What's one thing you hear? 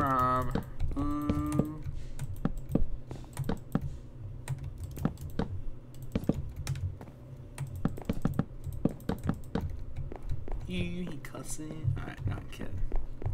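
Footsteps thump steadily on wooden planks.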